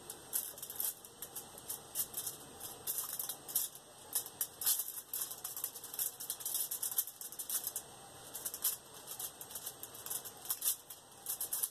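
Thin plastic crinkles and rustles under a hand.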